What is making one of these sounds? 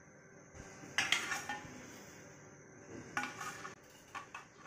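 Metal pans clank as they are moved on a counter.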